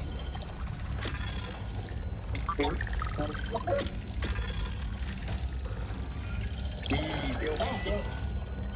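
Short electronic clicks sound as menu options are selected.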